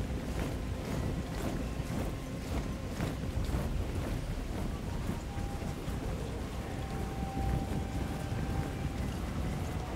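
Metal armour clanks and rattles among the marching soldiers.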